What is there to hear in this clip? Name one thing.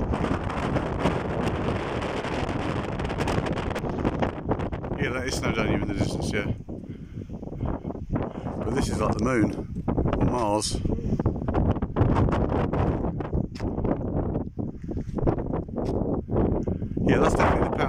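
Wind blows hard and rumbles against the microphone outdoors.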